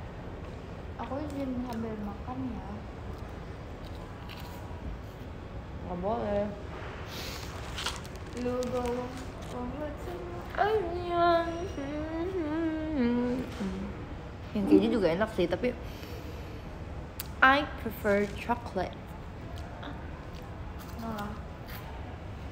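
A young woman talks animatedly and close by.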